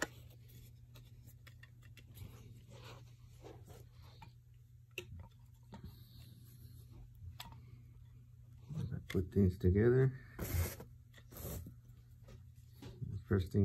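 Wooden stand legs knock and click together.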